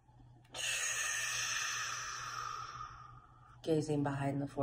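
A woman blows out a long, slow breath close by.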